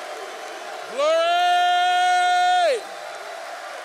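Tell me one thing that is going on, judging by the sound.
A man holds a long, loud note through a microphone.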